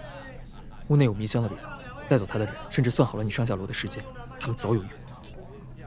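A second young man speaks with surprise, close by.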